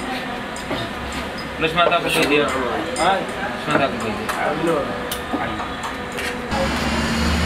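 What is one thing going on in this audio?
Several men talk and laugh together nearby.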